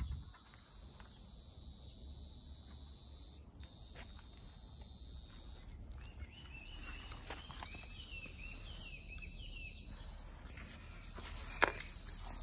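Grass rustles as a small dog pushes through it.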